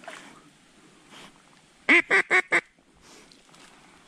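A dog splashes and paddles through water close by.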